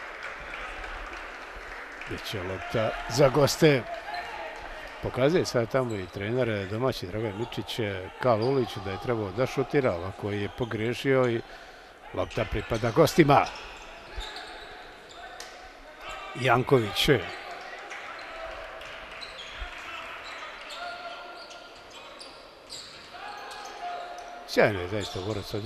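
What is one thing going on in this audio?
A crowd of spectators murmurs in a large echoing hall.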